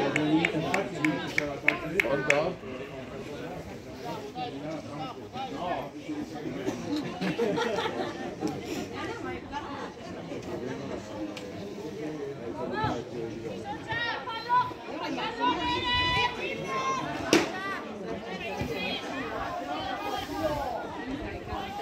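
Young players shout and call out to each other across an open pitch.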